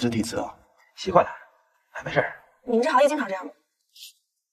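A second young man answers in a relaxed voice.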